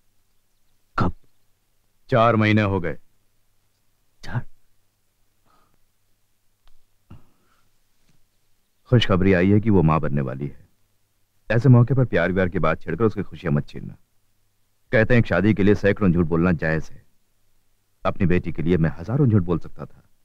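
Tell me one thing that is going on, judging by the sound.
A middle-aged man speaks with emotion, close by.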